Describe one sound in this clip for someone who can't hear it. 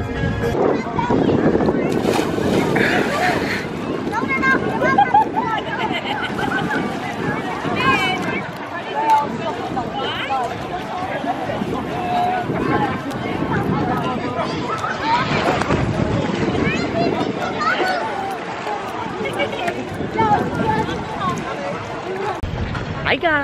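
A crowd chatters and calls out in an open-air pool area.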